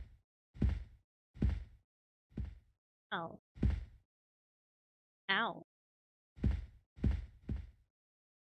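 Heavy footsteps thud slowly on a wooden floor.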